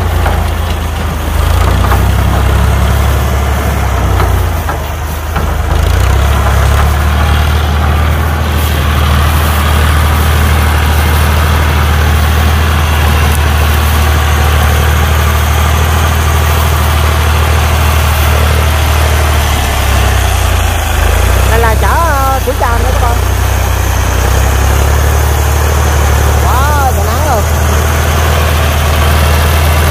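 A tractor engine idles with a deep, steady rumble close by.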